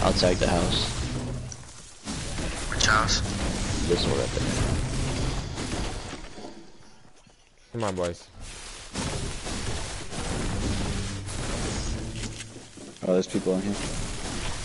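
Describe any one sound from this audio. A pickaxe chops into wood with repeated hard thuds.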